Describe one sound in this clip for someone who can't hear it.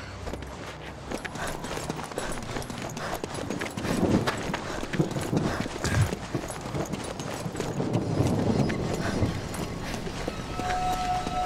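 Boots run quickly over stone ground.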